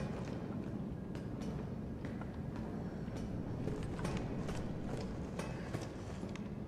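Footsteps clank on metal stairs.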